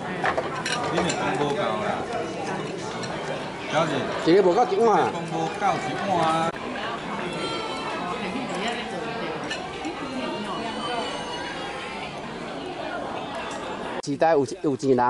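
Several adult men and women chat and laugh around a table.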